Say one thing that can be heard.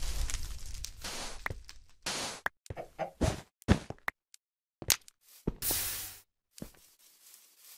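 Blocks break with short, dull thuds.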